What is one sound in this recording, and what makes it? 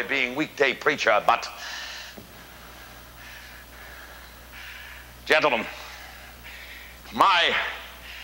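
An elderly man speaks theatrically, in a room with some echo.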